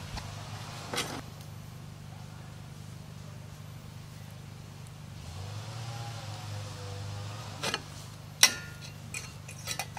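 Glass clinks against a table.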